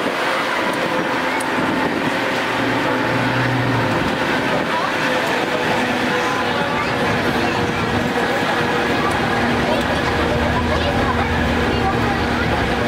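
A crowd of people chatters.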